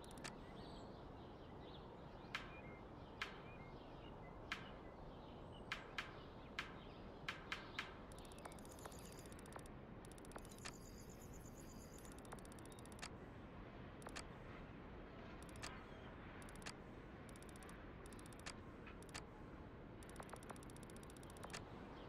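Short menu clicks tick now and then as selections change.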